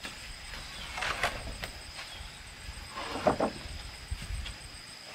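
Wooden planks clatter as they are set down on the ground.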